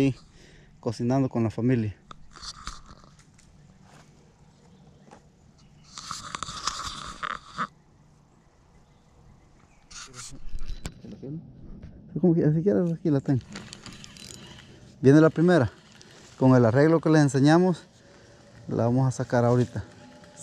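A man talks calmly, close to a chest-worn microphone.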